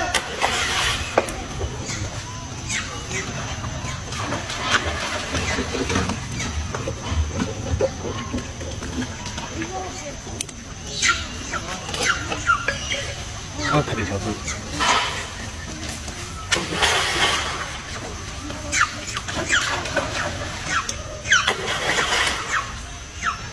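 Something splashes into water.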